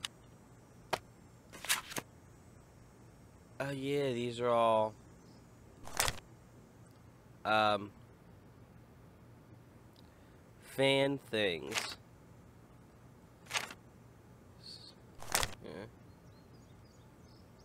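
Book pages flip and rustle.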